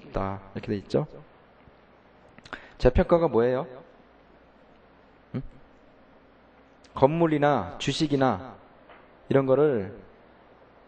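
A man speaks slowly and thoughtfully into a microphone, in short bursts with pauses.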